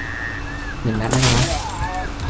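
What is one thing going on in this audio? A flare gun fires with a sharp bang.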